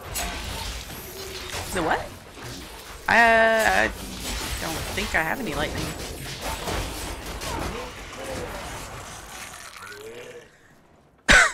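Game spells crackle and boom with fighting sounds.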